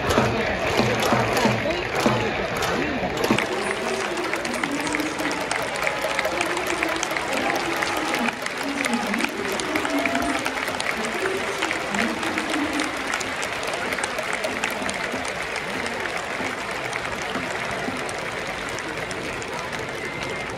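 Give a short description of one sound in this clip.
A large stadium crowd chants and cheers outdoors.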